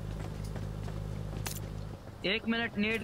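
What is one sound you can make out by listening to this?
A motorbike engine idles with a low steady hum.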